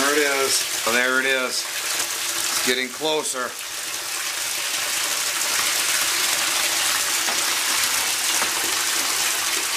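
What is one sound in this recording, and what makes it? Water rushes and splashes steadily into a bathtub.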